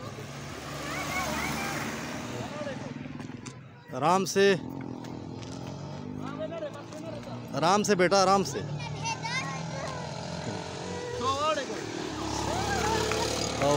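Young children shout and call out loudly nearby.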